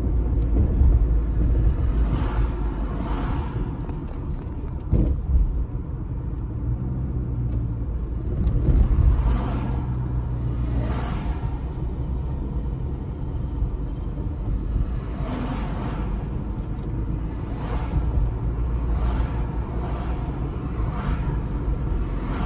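A car's engine hums steadily, heard from inside.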